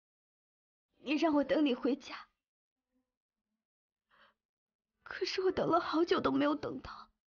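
A young woman speaks close by, pleading with emotion.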